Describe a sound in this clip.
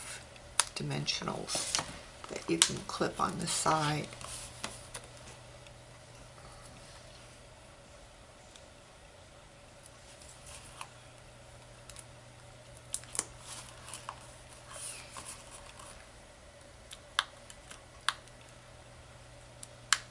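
Hands handle stiff cardstock, which rustles and taps on a table.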